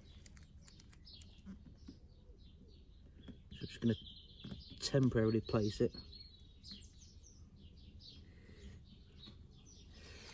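A stiff plastic trim scrapes and clicks against a metal exhaust.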